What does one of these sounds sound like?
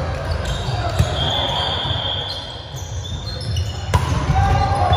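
A volleyball thuds off players' arms and hands.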